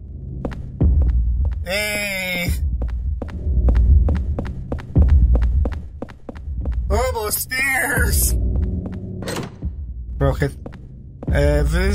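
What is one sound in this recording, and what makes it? Footsteps echo steadily on a hard floor.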